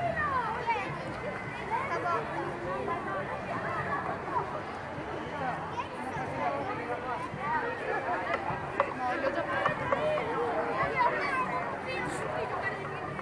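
A crowd of adults and children chatters all around outdoors.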